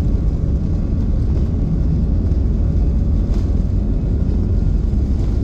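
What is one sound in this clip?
Wheels rumble low on the runway.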